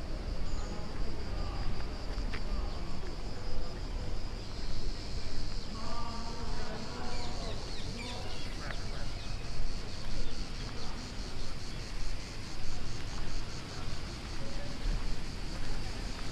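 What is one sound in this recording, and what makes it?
Footsteps crunch steadily on a gravel path outdoors.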